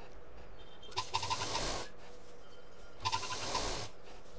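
A sewing machine whirs in short bursts.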